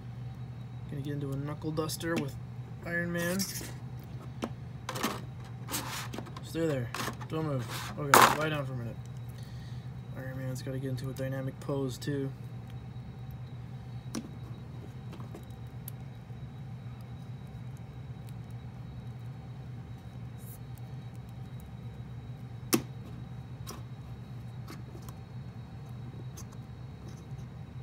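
Small plastic joints click and tap as a toy figure is handled and posed.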